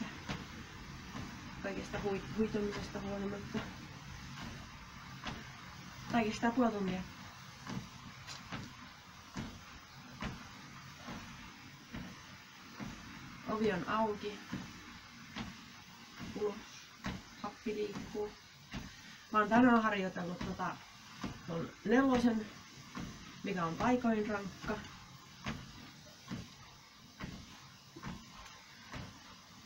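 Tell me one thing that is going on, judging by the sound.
A treadmill belt hums and thumps under running feet.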